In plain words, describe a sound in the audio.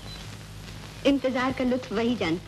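A young woman sings in a high voice, through an old, hissy recording.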